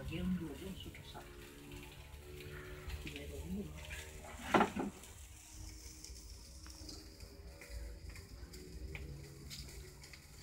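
Meat sizzles and crackles over a fire.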